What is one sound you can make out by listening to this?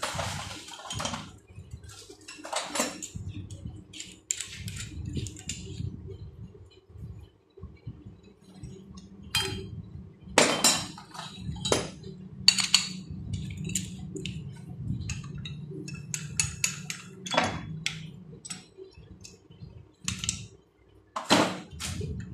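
Metal tools clink and clatter against each other.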